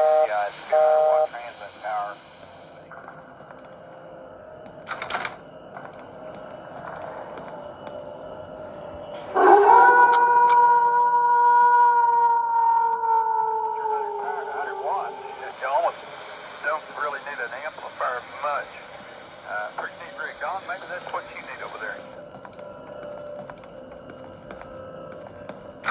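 Eerie game sounds and tones play from a tablet's speaker.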